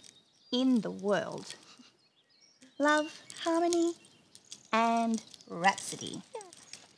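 A young woman sings brightly in short sung phrases.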